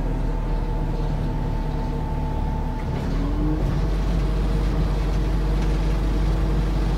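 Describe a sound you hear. A bus engine hums and rumbles steadily while the bus rides along.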